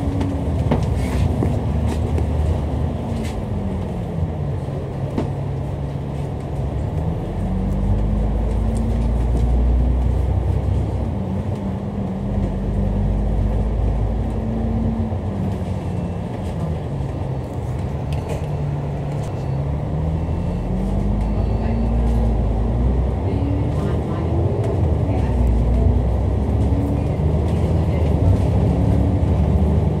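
Traffic rumbles steadily on a busy road outdoors.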